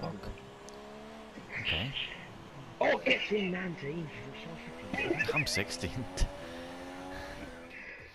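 A racing car engine whines at high revs, rising and falling with gear changes.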